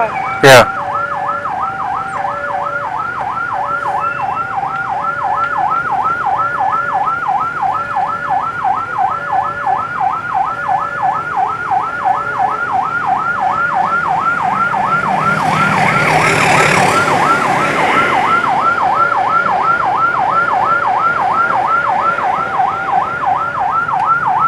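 A police siren wails in a fast, steady warble close by.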